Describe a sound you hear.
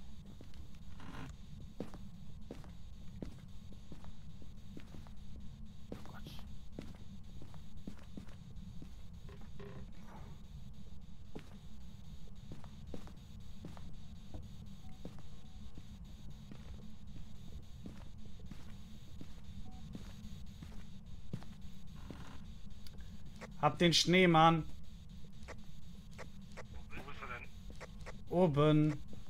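Footsteps thud on a floor.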